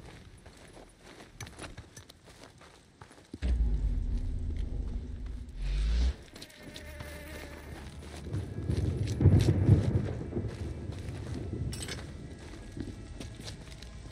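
Footsteps crunch quickly over dirt and gravel.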